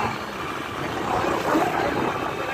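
A motorcycle engine hums close by as it rides past.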